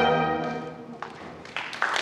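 A brass ensemble holds a final chord that rings out in an echoing hall.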